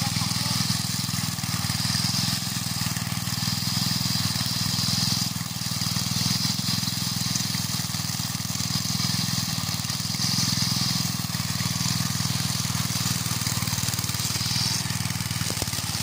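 Mower blades cut and swish through grass.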